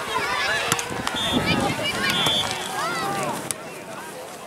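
Young players shout to each other outdoors on an open field.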